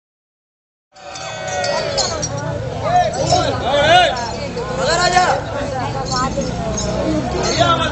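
A man sings loudly through a loudspeaker, with wavering held notes.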